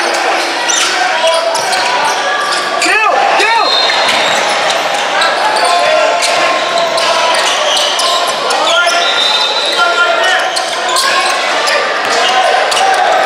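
Young men shout and call out across an echoing gym.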